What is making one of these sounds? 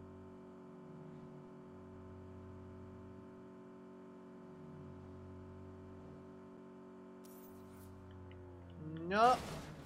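A car engine hums steadily at speed.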